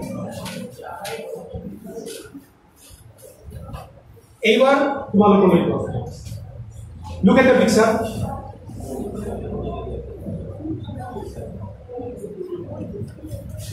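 A crowd of people murmurs in a large room.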